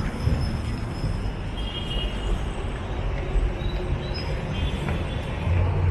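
Footsteps climb metal stairs.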